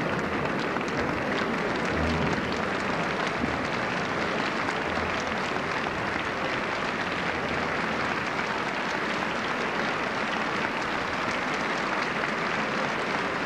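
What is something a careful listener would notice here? A large theatre audience applauds in a big hall.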